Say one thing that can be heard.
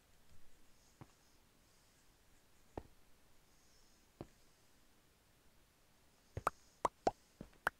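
Short soft clicks sound as items are placed one by one.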